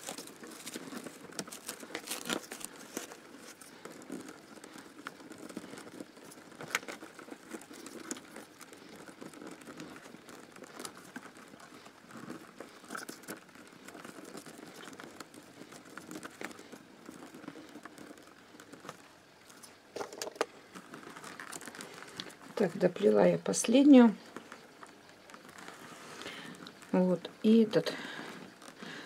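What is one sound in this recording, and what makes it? Thin reeds rustle and tick as hands weave them.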